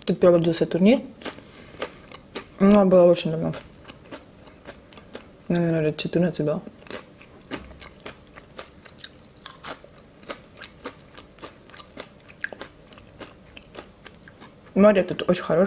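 Crisp food crunches close to a microphone.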